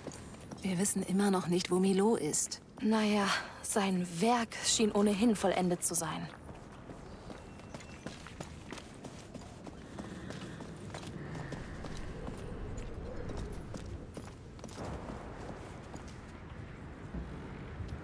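Footsteps shuffle softly on stone floors.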